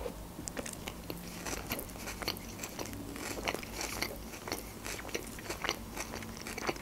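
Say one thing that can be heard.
A young woman chews food with wet mouth sounds close to a microphone.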